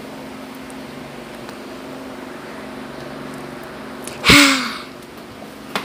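A small plastic toy clicks down onto a plastic surface.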